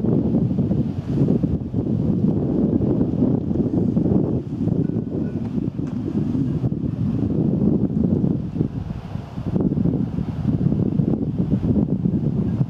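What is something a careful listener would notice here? Wind buffets loudly outdoors in the open, rumbling and gusting.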